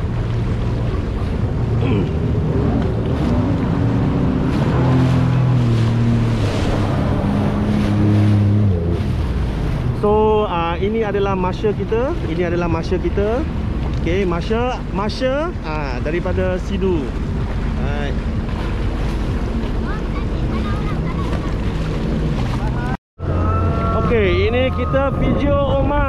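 Water splashes and sprays against a hull.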